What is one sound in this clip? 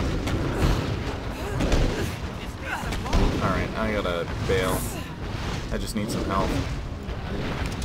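Fire spells burst and crackle loudly.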